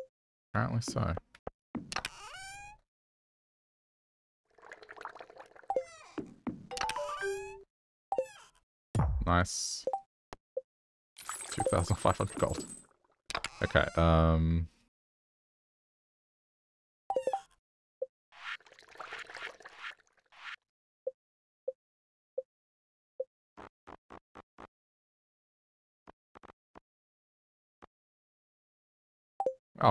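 Soft game menu clicks and pops sound as tabs and windows open.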